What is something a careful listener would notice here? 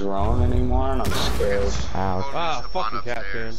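A smoke grenade bursts with a loud hiss.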